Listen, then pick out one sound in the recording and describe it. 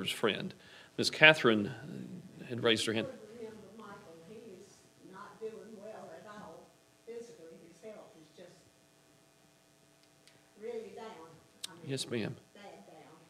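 A man speaks steadily through a microphone in an echoing room, pausing now and then.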